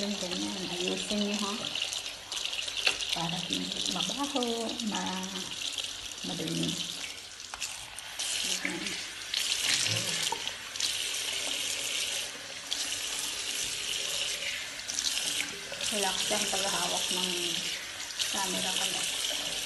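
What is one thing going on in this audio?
Water runs from a tap and splashes into a basin.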